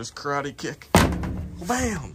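A boot kicks a metal door with a heavy thud.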